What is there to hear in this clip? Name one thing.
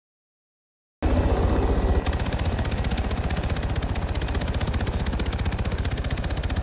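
A helicopter's rotor thumps loudly and steadily.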